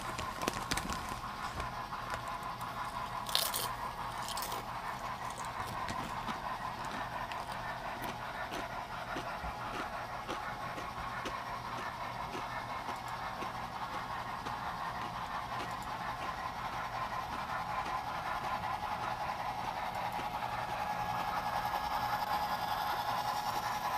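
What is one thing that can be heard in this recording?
A model train hums along its track.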